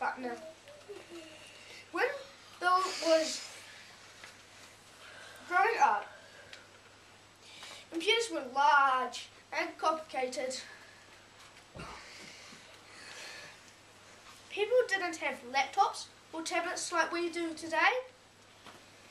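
A boy speaks clearly and with expression, reciting in bursts with pauses.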